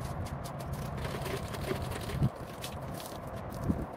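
Water sloshes in a bucket.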